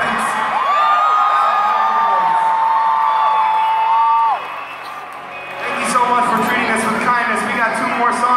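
A rock band plays loudly through big loudspeakers in a large echoing arena.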